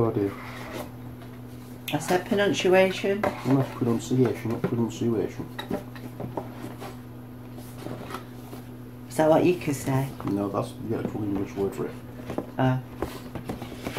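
Cardboard rustles as a box is opened.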